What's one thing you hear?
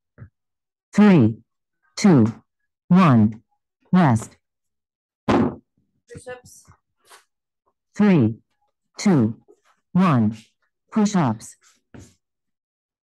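A woman calls out short words loudly and energetically over an online call.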